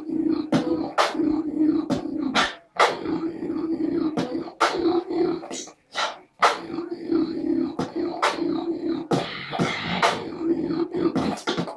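A young man sings and makes percussive sounds with his mouth close by.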